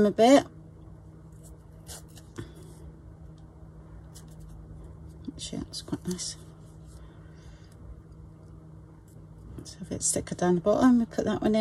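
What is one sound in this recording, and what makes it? Soft fibres rustle between fingers.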